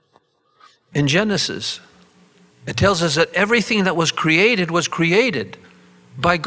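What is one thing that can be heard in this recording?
An elderly man speaks with animation into a microphone, heard through loudspeakers.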